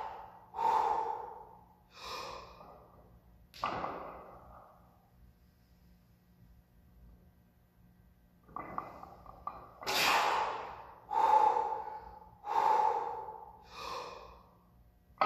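A man breathes out hard and grunts with each lift.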